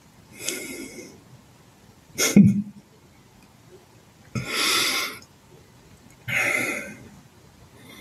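A man laughs softly over an online call.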